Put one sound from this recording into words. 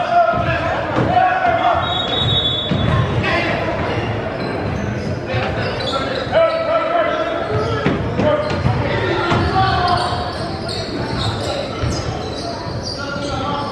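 Young men talk and call out in a large echoing gym.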